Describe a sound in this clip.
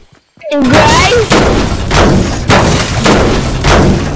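A pickaxe strikes the metal body of a bus.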